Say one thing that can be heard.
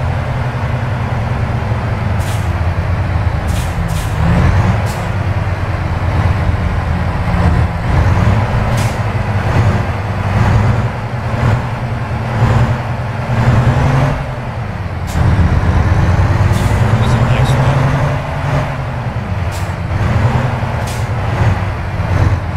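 A truck's diesel engine rumbles steadily, its pitch rising and falling as it speeds up and slows down.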